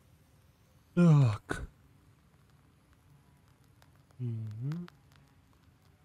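A young man speaks briefly and loudly into a microphone, up close.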